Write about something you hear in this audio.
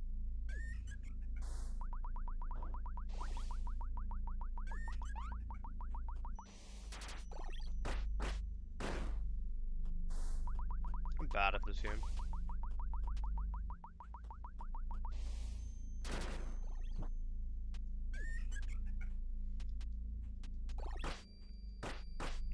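Game sound effects chime, whoosh and clatter.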